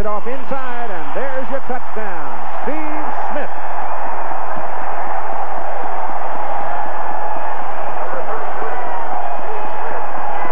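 A large crowd cheers and roars loudly.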